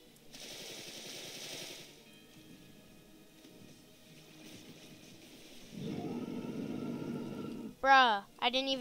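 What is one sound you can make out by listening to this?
Heavy magical blasts whoosh and boom.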